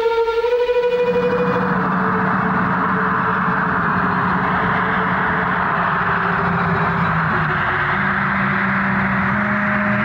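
The engines of a propeller plane roar loudly as it flies in low to land.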